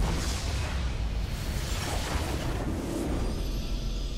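Loud magical blasts and crashes burst in quick succession.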